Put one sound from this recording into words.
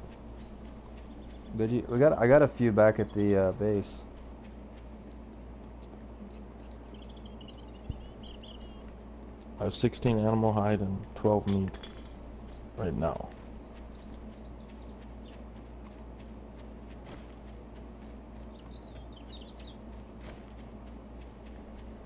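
Footsteps tread steadily over dry ground.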